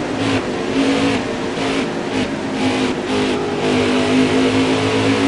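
Racing car engines roar at high speed.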